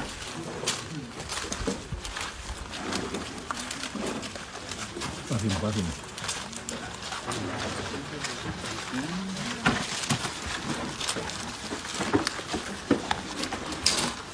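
Several men talk loudly nearby.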